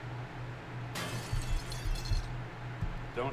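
A stone axe strikes rock with a dull crack.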